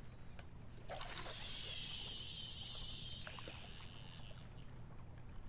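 A fishing line whizzes off a reel.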